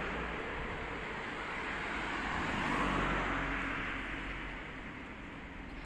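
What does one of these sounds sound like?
A car drives past on a nearby road with a rising and fading hiss of tyres.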